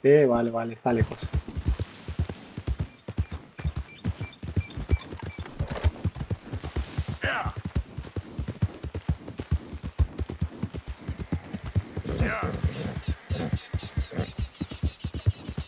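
Horse hooves thud steadily on grassy ground at a gallop.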